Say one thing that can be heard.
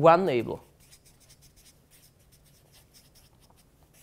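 A marker squeaks and scratches on a whiteboard.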